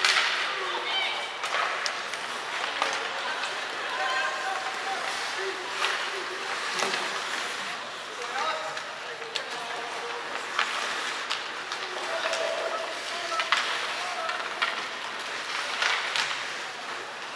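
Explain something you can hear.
Skates scrape and hiss across the ice in a large echoing arena.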